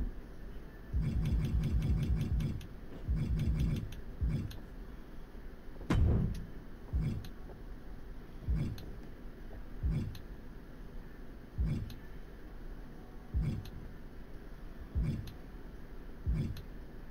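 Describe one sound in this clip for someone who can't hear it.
A game menu gives a soft thud each time a selection changes.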